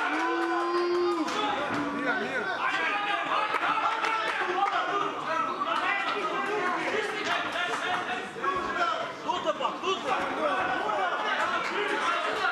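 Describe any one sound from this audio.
A crowd of spectators talks and shouts around the ring.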